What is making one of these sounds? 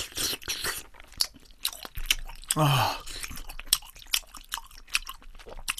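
A young man chews and smacks his lips.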